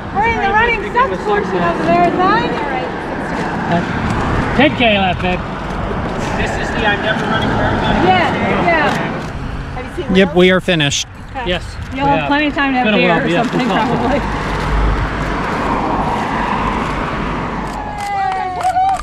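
A middle-aged woman talks close by.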